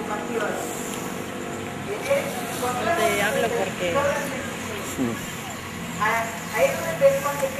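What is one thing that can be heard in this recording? A crowd of men and women sings together outdoors.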